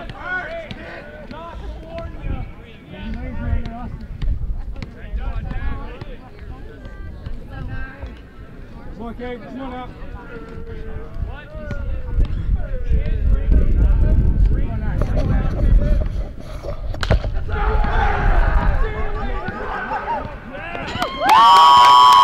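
Young men on a team chatter and call out from nearby.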